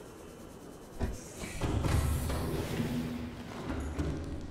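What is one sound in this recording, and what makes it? A submarine docks with a loud metal clunk, followed by a rushing hiss.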